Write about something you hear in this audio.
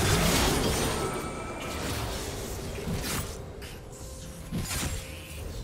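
Game spells and attacks burst and crackle in a busy fight.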